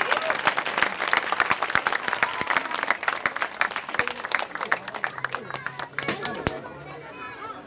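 A crowd claps hands in a fast rhythm outdoors.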